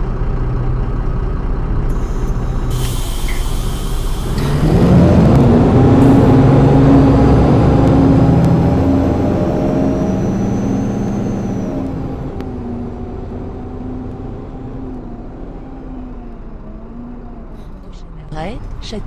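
A bus engine rumbles and revs as the bus pulls away and slowly fades into the distance.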